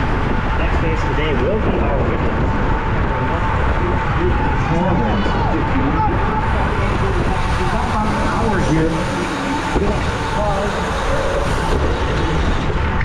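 Spectators cheer and shout from the roadside.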